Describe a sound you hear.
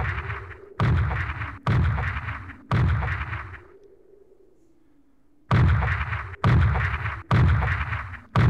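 A huge creature stomps with heavy, booming footsteps.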